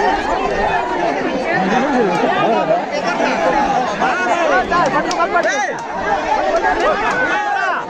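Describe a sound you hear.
A large crowd of children and adults chatters and shouts loudly outdoors.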